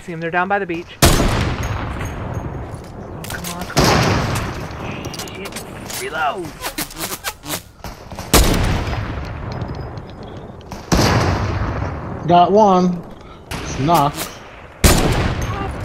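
A sniper rifle fires loud, sharp shots that echo away.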